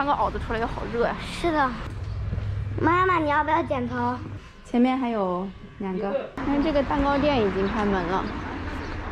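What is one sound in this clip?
A young woman talks cheerfully close by.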